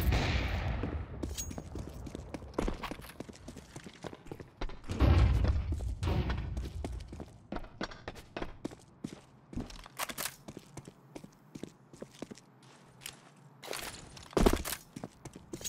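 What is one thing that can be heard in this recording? Footsteps tap quickly on concrete.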